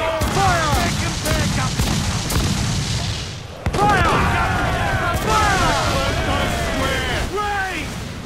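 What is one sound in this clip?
Explosions crack and rumble close by.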